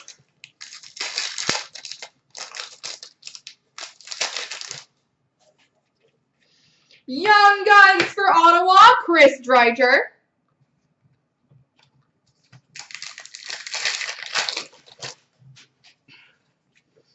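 Plastic card wrappers crinkle and rustle in someone's hands.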